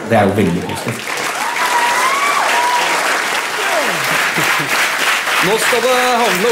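An audience applauds and laughs.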